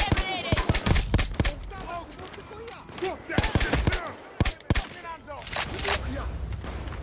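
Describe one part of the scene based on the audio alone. Guns fire in sharp, rapid bursts.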